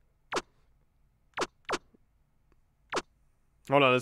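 Short game menu blips sound as a cursor moves.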